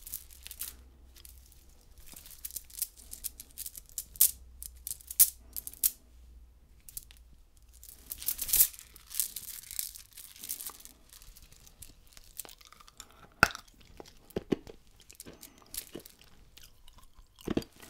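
Candy beads click softly as fingers handle a candy bracelet.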